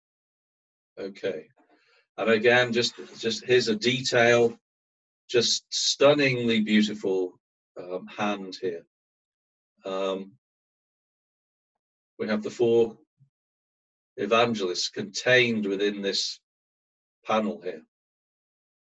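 A man lectures calmly through a microphone on an online call.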